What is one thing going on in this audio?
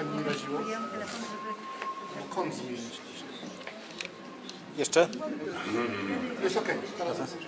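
An elderly man speaks calmly into a microphone in a reverberant room.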